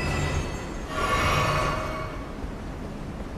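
A crackling burst of magic flares up and fades.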